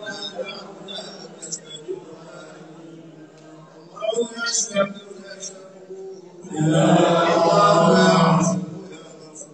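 A crowd of men murmur and talk nearby.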